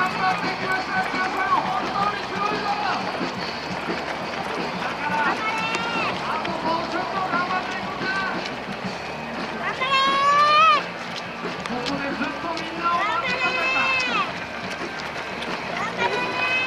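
Many running shoes patter on a paved road.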